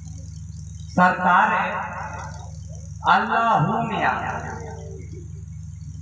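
A man calls out loudly through a loudspeaker outdoors.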